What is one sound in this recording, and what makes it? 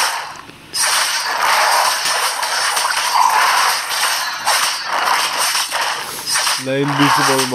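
Magic blasts whoosh and crackle in a fast fight.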